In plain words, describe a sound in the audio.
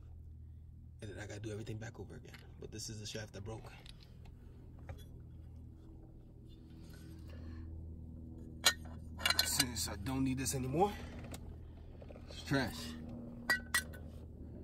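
Metal car parts click and clatter as they are handled.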